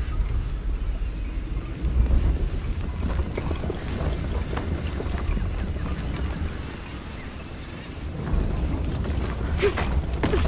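Footsteps scrape and tap on stone.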